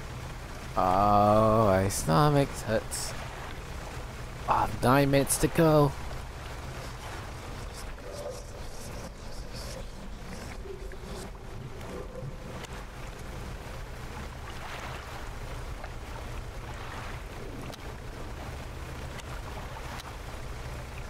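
Waves wash steadily against a boat at sea.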